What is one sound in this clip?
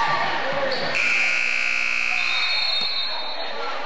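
A loud buzzer sounds.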